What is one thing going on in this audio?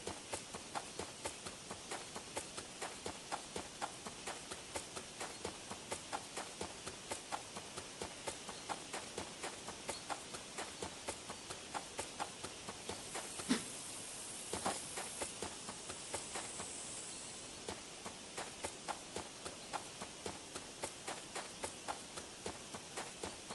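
Footsteps of a running cat patter on grass in an even rhythm.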